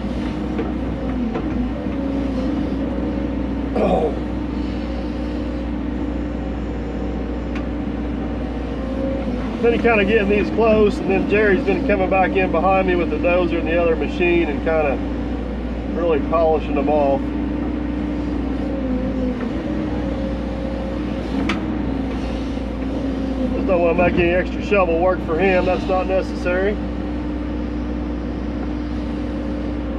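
An excavator engine hums steadily from inside the cab.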